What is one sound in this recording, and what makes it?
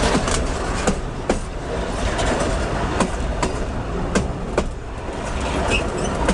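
Steel wheels clack and squeal over the rail joints.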